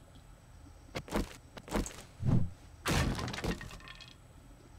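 A man speaks casually into a close microphone.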